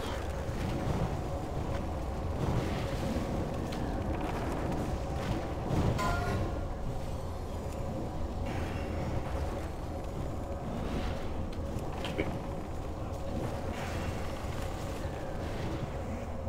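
Spells crackle and explode in a busy game battle.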